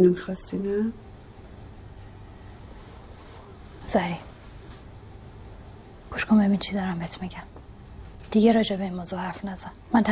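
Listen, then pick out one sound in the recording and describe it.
A woman talks calmly.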